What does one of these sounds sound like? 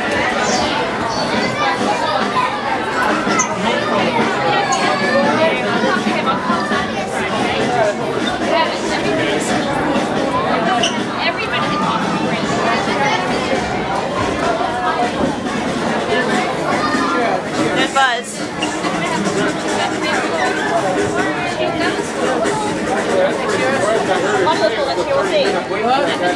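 A crowd of men and women chatter loudly all around in an echoing room.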